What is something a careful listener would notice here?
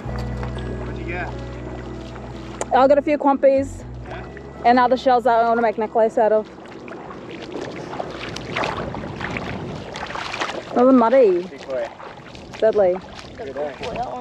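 Feet splash through shallow water.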